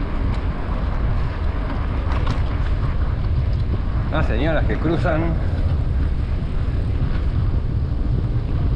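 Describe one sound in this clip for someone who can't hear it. Wind buffets loudly past a cyclist riding steadily.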